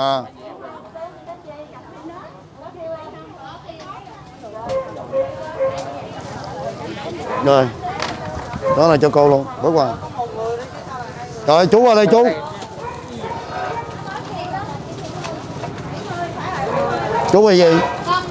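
Plastic bags rustle as they are filled.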